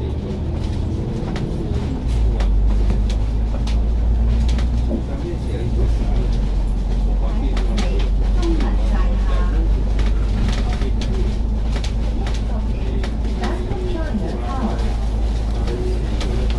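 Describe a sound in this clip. Traffic passes along a city road.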